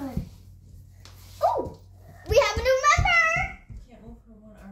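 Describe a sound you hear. A young girl talks and squeals excitedly close by.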